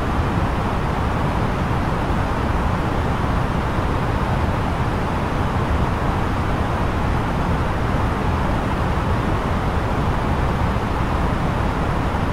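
A jet airliner's cockpit fills with a steady, low roar of engines and rushing air in flight.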